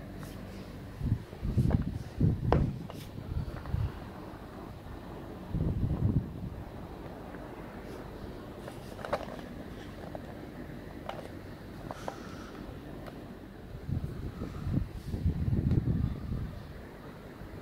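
Hands rub and bump against a cardboard box close by.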